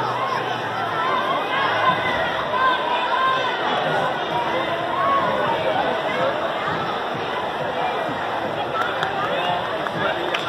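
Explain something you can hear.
A crowd of children and adults chatters and cheers loudly in a large echoing hall.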